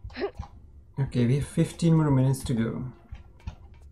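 A man talks calmly into a nearby microphone.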